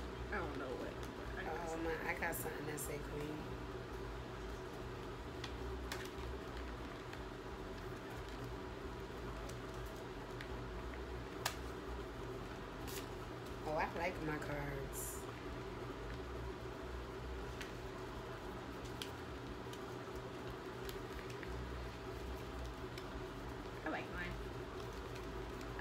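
Stiff cards shuffle and tap against each other.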